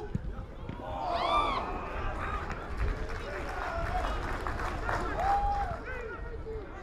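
Young men shout to each other across a pitch.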